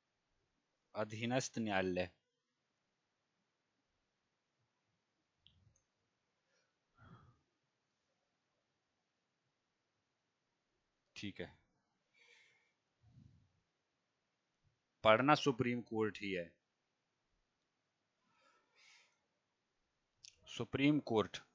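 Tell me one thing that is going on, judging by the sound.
A man speaks calmly in short bursts through a close headset microphone.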